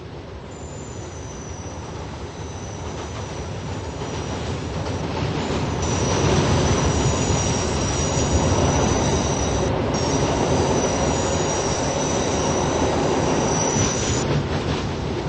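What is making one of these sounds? Train wheels squeal with a high, steady whine.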